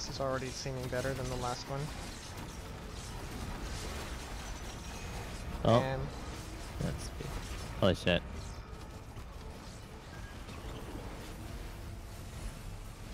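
Energy blasts and explosions boom in a video game battle.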